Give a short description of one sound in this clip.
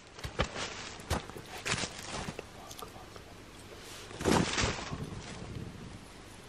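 A stick scrapes through dry twigs.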